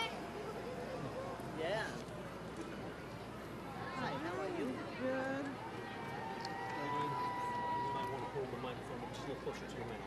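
A crowd of onlookers chatters and calls out outdoors along a street.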